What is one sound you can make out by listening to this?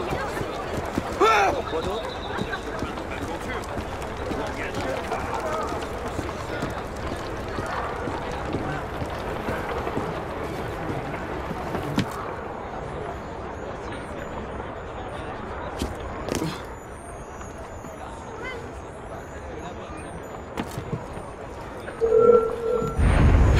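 Footsteps patter quickly over stone.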